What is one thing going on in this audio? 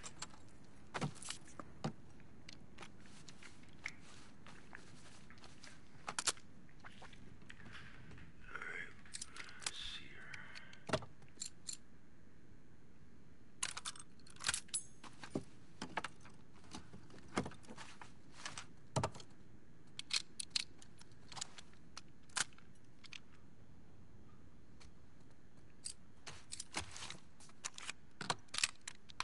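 Metal gun parts click and clack as they are handled.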